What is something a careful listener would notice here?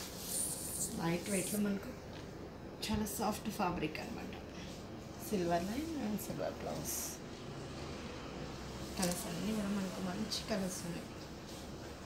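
A young woman speaks calmly and close by, in short phrases.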